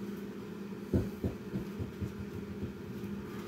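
A kettlebell thuds down onto a floor mat.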